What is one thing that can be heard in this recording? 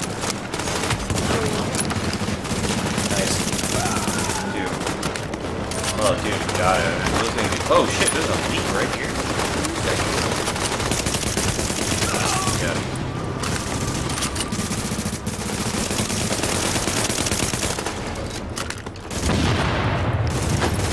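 Rapid gunfire crackles and pops.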